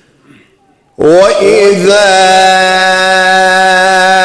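A man chants loudly into a microphone, holding a long melodic note.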